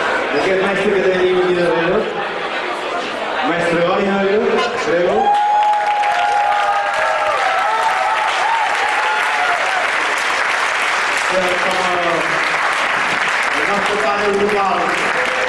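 A man sings into a microphone over loudspeakers in a large hall.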